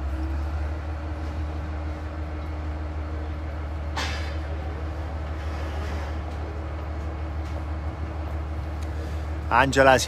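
Water laps gently against the shore and boats.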